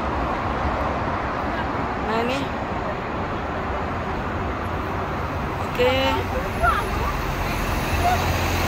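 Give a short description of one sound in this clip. Traffic hums steadily through a road underpass.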